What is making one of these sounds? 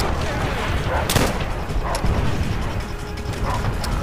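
A rifle clicks and clatters as it is handled.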